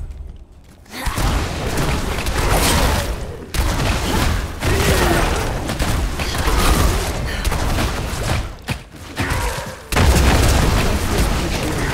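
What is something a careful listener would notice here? Blows and magic blasts crash loudly in a fierce fight.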